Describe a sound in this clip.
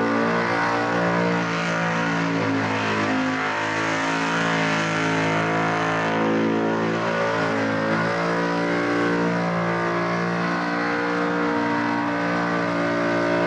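A car engine roars at high revs during a burnout.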